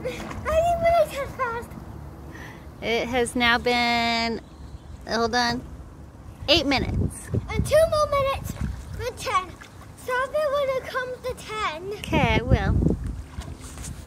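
A young boy talks cheerfully close by.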